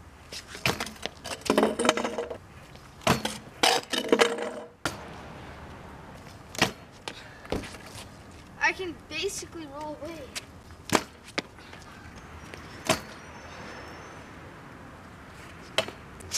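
A scooter deck clacks sharply on concrete.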